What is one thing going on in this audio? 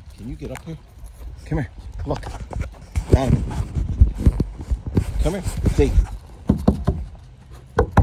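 A dog's paws crunch on wood chips.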